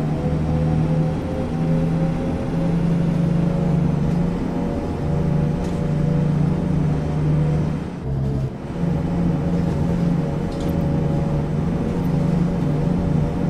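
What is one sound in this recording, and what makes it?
A bus engine drones steadily.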